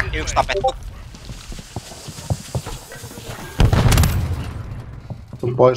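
A smoke grenade hisses.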